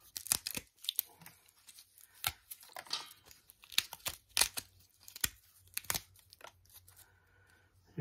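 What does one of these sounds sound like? Dry papery material crackles and crumbles between fingers.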